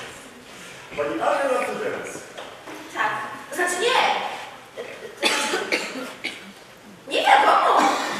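A man speaks loudly on a stage in a large hall.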